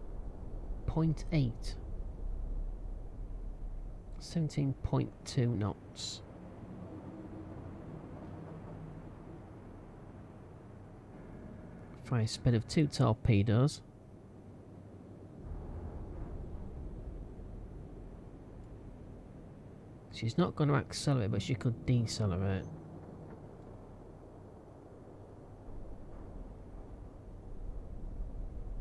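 Stormy sea waves roll and crash steadily.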